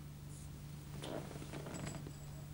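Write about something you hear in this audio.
A cigarette scrapes and taps as it is stubbed out in a glass ashtray.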